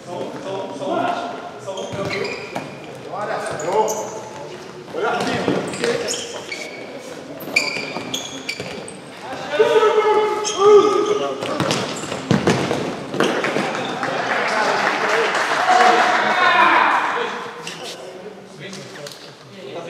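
Sneakers squeak sharply on a hard indoor floor.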